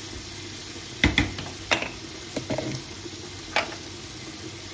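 Utensils knock and clatter against a pan.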